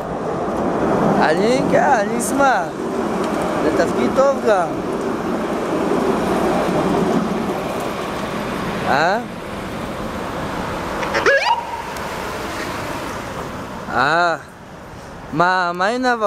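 An ambulance siren wails and yelps, drawing closer and passing by.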